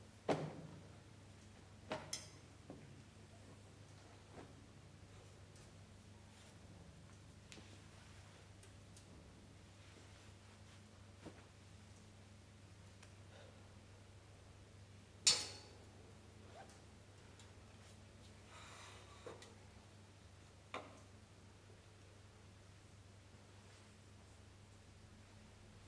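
Clothes rustle as a man dresses.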